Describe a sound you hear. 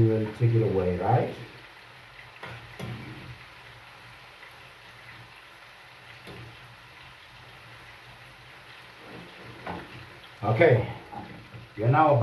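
A metal spoon scrapes in a frying pan.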